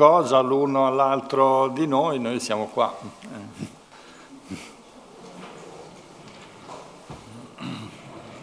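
A middle-aged man speaks with animation, then trails off into quiet remarks.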